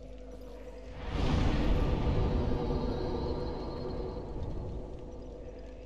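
A fire flares up with a rushing roar, then slowly dies down.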